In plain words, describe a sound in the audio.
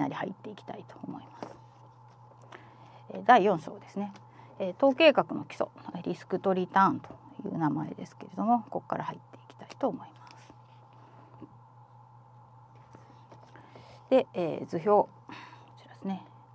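Paper pages rustle as a book's pages are turned by hand.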